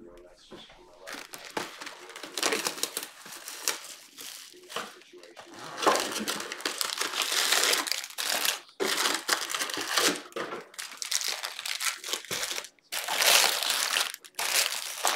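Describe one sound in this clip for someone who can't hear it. Foil card packs rustle and crinkle as hands shuffle them.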